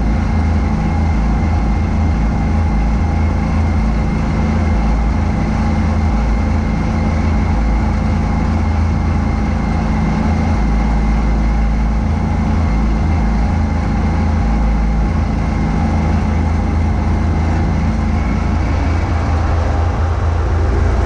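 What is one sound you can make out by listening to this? A snowblower engine roars steadily up close.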